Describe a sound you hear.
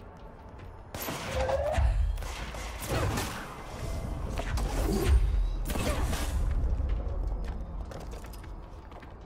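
Heavy objects are flung and smash apart with loud crashes and rumbles.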